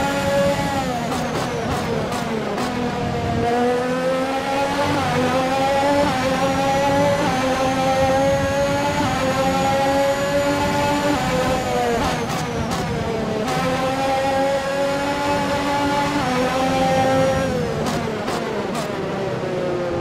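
The car's gears shift with quick clicks.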